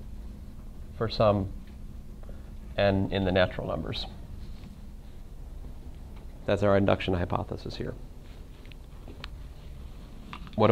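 A man speaks calmly in short phrases, lecturing.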